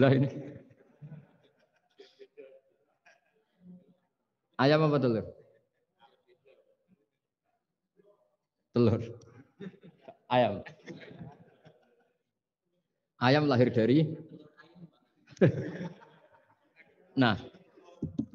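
Men laugh softly.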